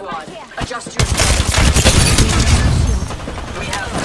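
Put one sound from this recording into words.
A gun fires a rapid burst with crackling electric zaps.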